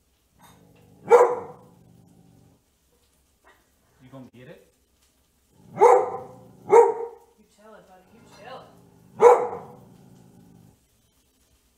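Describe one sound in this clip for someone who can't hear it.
A large dog barks loudly a few times, with short pauses between barks.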